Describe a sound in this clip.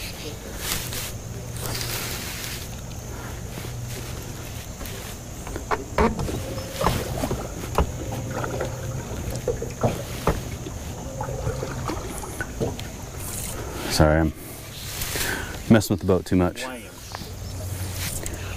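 A fishing rod swishes through the air in a cast.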